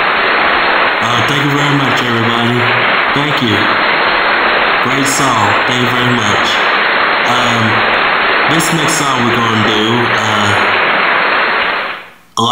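A man sings into a microphone.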